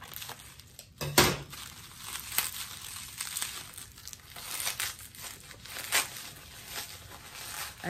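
Paper rustles and crinkles in hands.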